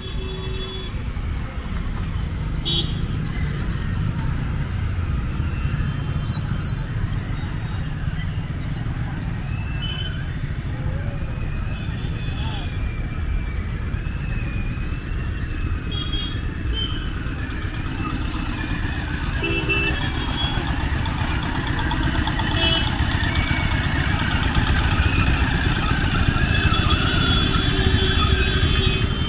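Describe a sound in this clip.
Motorcycles and scooters ride past.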